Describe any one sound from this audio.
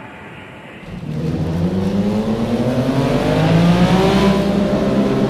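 A racing car engine roars and rises in pitch as the car speeds up.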